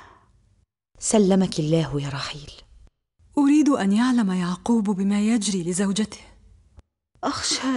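A woman speaks anxiously, close by.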